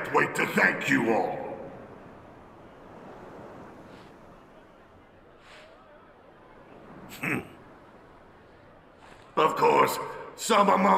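A middle-aged man speaks loudly and forcefully through a microphone, with an echo.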